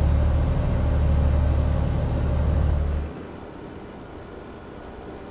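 Tyres roll with a steady rushing hum on a motorway.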